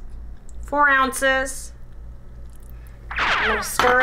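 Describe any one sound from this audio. Water pours into a pan.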